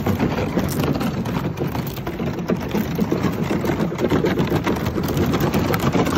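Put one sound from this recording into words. Thin ice crackles and scrapes against a kayak's hull.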